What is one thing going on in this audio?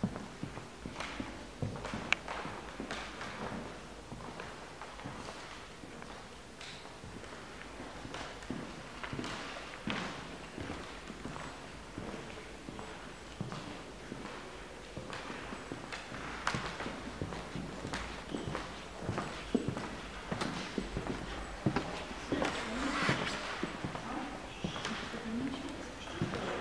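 Footsteps tap on a wooden floor in a large, echoing hall.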